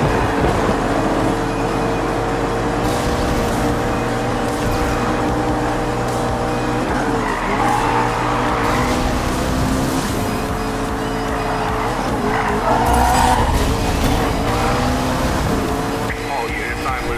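A sports car engine roars at high speed, shifting up and down in pitch.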